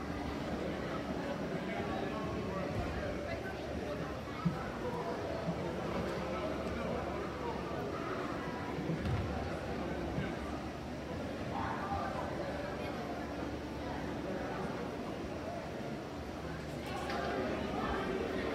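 A crowd of spectators chatters in a large echoing gym.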